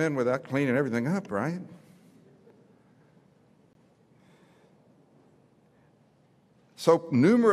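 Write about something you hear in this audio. An elderly man speaks with animation through a microphone and loudspeakers, pausing between phrases.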